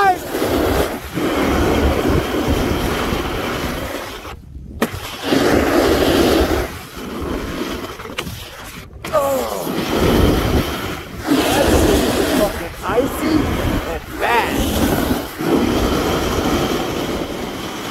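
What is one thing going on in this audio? Wind rushes past close by.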